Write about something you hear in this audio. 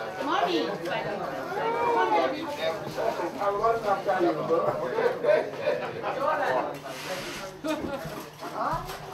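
Several adults talk and chat nearby outdoors.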